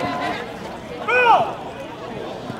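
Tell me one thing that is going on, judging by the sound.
A man shouts a call loudly outdoors.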